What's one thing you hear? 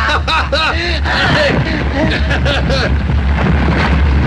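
Two men laugh heartily nearby.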